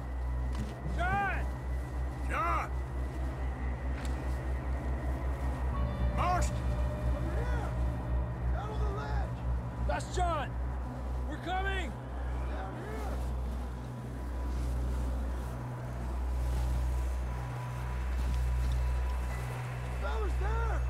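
Wind howls and gusts outdoors.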